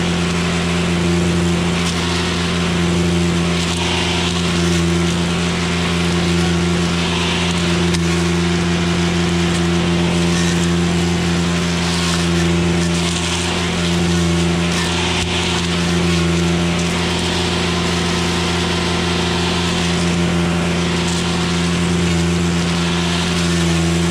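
A petrol brush cutter engine drones loudly and steadily up close.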